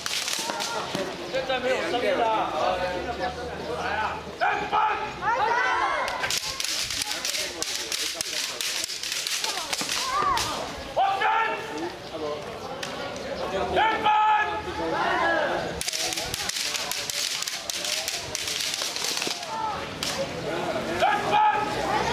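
Many young people shout loud cries in a group outdoors.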